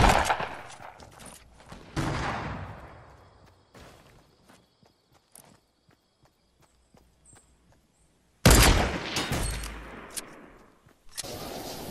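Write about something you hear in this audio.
Sniper rifle shots crack loudly, each followed by a fading echo.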